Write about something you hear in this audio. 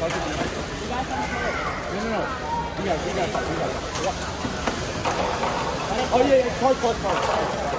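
Plastic balls knock and clatter against robots.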